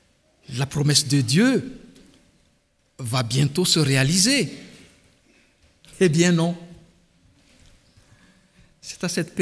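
A man speaks with animation into a microphone, his voice echoing in a large hall.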